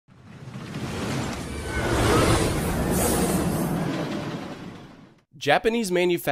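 A roller coaster car rushes by with a rising and fading whoosh.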